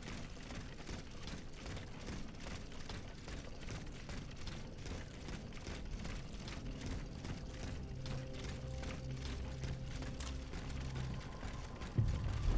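Footsteps thump quickly on wooden boards.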